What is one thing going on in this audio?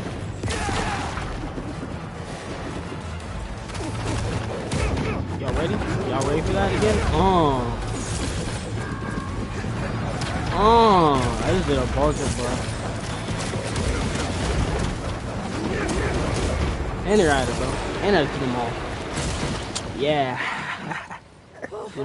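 Game combat sounds crash and boom with blasts and impacts.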